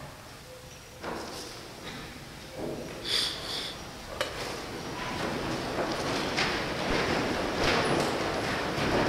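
Footsteps shuffle softly across a floor.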